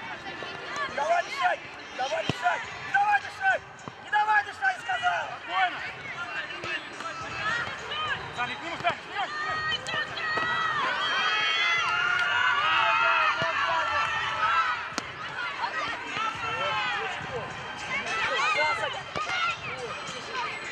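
Young boys shout and call out to one another across an open outdoor pitch.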